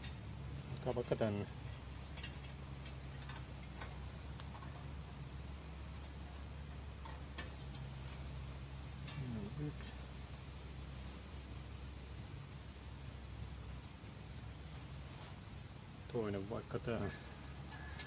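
Metal bars clank against a metal frame.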